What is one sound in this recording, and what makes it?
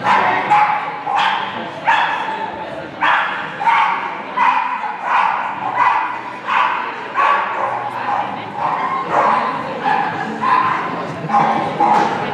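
A small dog barks sharply over and over in a large echoing hall.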